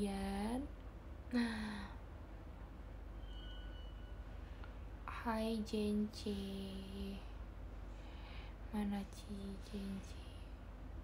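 A young woman speaks in short, casual bursts close by.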